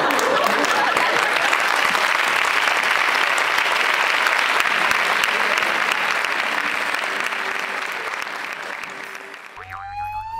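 An audience applauds loudly in a large hall, then the applause fades away.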